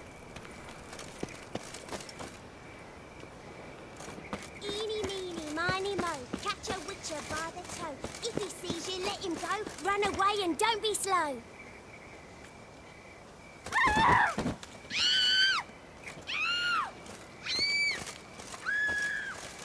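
Footsteps walk on cobblestones.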